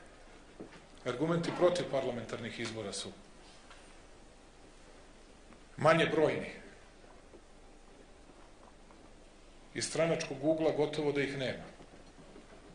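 A man speaks with emphasis through a microphone, pausing between phrases.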